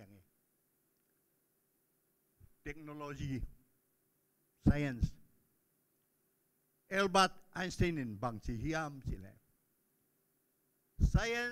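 An elderly man speaks slowly into a microphone, in short phrases with pauses, heard through a loudspeaker.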